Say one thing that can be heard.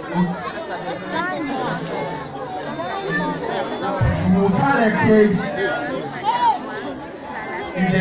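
A crowd of adults and children chatter and cheer at a lively party.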